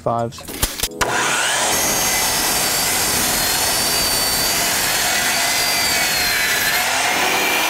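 A power saw whines loudly as it cuts through wood.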